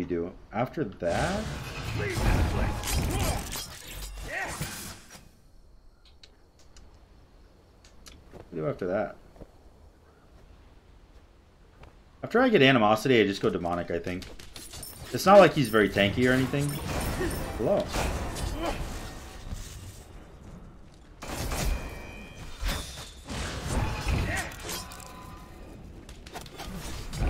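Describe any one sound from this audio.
Weapons clash and spells burst in a fast fight.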